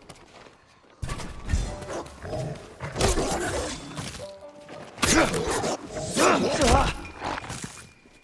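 Swords slash and strike with heavy, sharp impacts.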